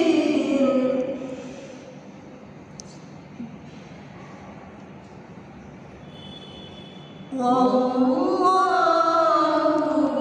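A young man chants in a drawn-out, melodic voice nearby, pausing in between.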